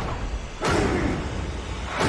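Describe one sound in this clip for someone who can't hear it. A gun fires a burst of shots.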